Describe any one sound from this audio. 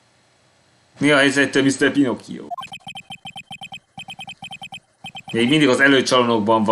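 A young man reads out lines with animation, close to a microphone.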